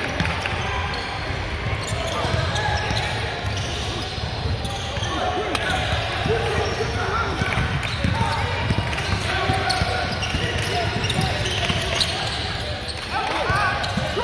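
A crowd of young men and women chatter and call out in the echoing hall.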